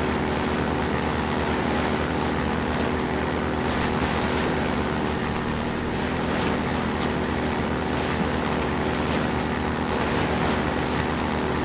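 A buggy engine drones steadily.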